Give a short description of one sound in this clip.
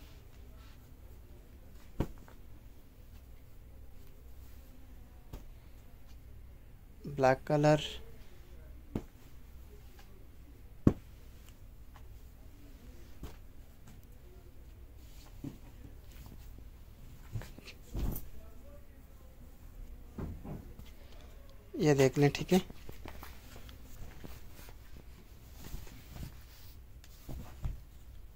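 Cloth rustles softly as pieces of fabric are lifted and laid down.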